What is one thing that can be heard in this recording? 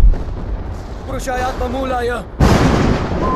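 A man speaks forcefully.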